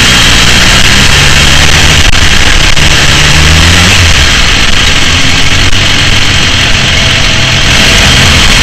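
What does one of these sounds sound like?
A motorcycle engine drones loudly up close and shifts in pitch.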